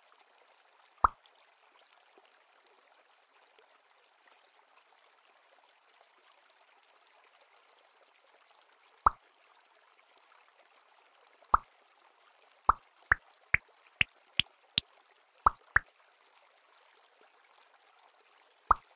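Short bright pops sound as balls join together, climbing in pitch in a quick run.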